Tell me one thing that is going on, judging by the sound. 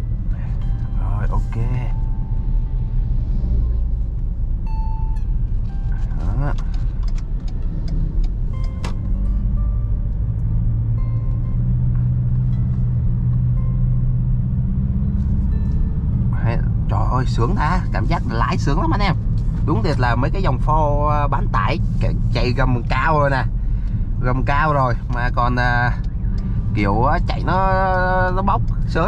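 A car engine hums steadily with a low road rumble from inside the car.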